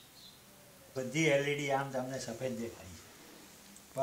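An elderly man speaks calmly nearby.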